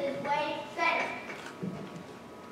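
A young girl speaks on a stage in a large echoing hall.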